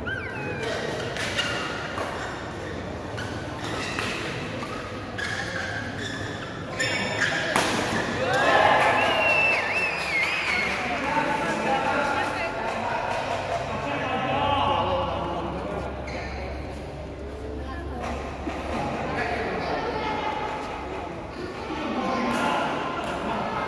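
Rackets smack a shuttlecock back and forth.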